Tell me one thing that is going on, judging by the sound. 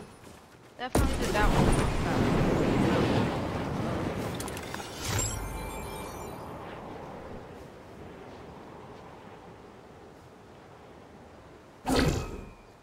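Wind rushes past during a fast fall and slowly fades.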